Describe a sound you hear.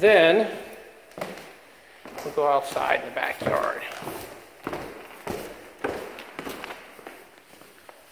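Footsteps thud down wooden stairs.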